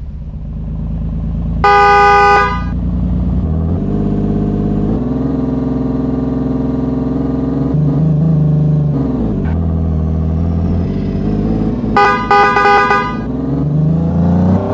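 An engine hums steadily and rises and falls in pitch as a vehicle speeds up and slows down.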